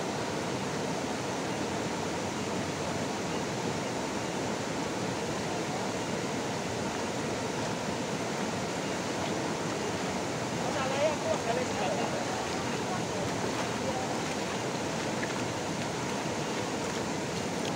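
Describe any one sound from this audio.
Shallow water rushes steadily over stones outdoors.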